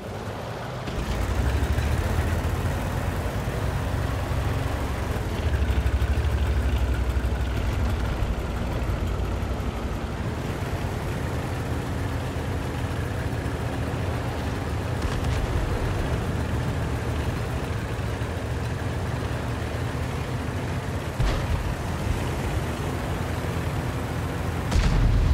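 Tank engines rumble and roar as the tanks drive across open ground.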